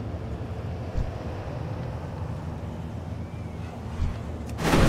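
Spell impacts thump now and then.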